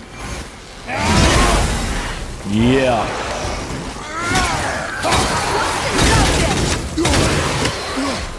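Fiery blasts burst with loud booms.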